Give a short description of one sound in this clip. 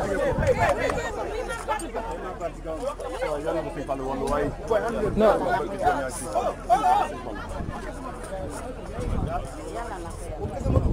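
A crowd of men talk and shout excitedly close by.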